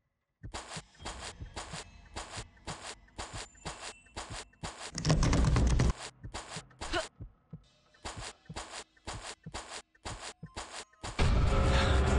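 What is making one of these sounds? Footsteps patter quickly and evenly across grass.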